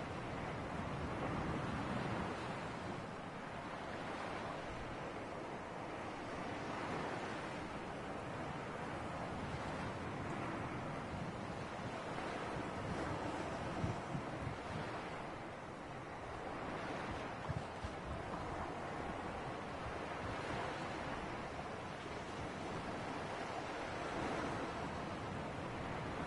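Waves wash and swell steadily, rising and falling in slow surges.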